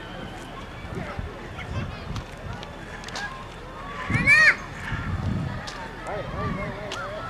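Children shout and chatter in the distance outdoors.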